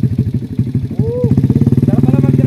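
A motorcycle engine revs up briefly.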